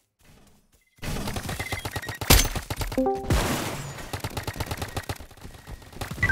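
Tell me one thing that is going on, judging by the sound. Cartoonish toy guns fire in quick bursts.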